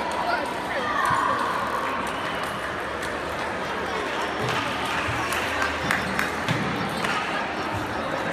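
Ping pong balls click sharply on tables and paddles.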